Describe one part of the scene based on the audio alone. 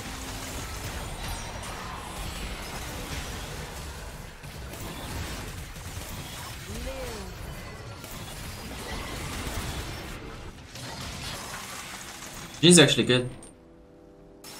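Game sound effects of spells and attacks clash and whoosh.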